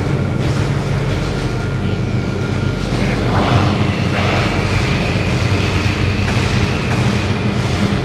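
Energy blasts zap past.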